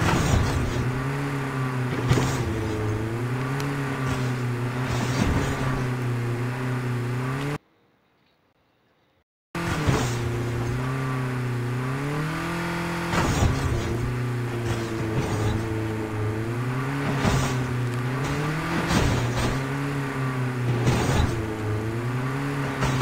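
A vehicle engine drones steadily, its pitch rising and falling.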